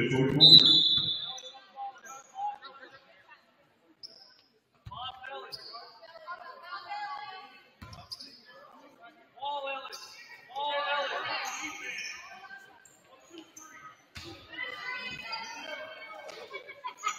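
Basketball sneakers squeak on a gym floor.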